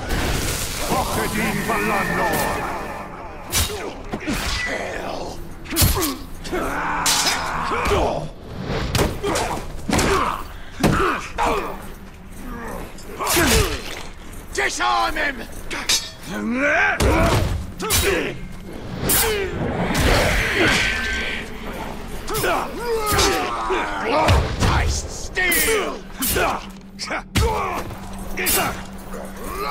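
Monsters grunt and snarl as they fight.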